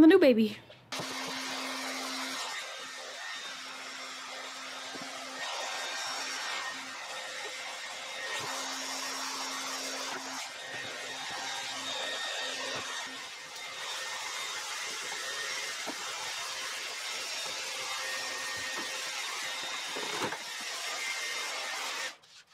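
A hair dryer blows with a steady whoosh.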